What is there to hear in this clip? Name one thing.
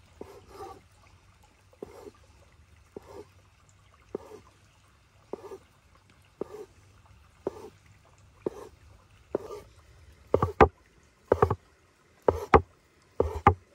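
A knife chops rhythmically through dough on a wooden board.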